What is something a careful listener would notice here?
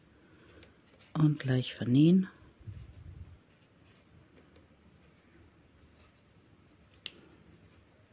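Metal knitting needles click and tick while working yarn.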